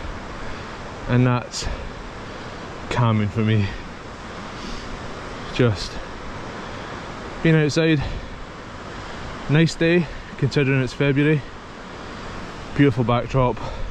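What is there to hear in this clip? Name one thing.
A man talks calmly in short phrases, close to the microphone.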